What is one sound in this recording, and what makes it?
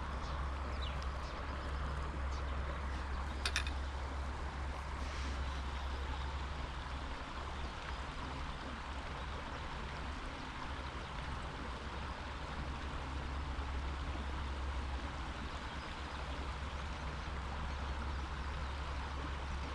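Wind blows steadily and rumbles against the microphone outdoors.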